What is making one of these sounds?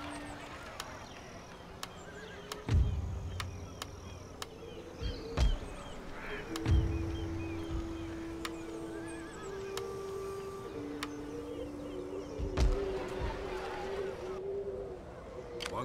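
Soft interface clicks sound as menus open and close.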